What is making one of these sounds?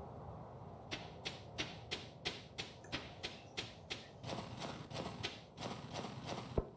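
Footsteps crunch rhythmically on snow.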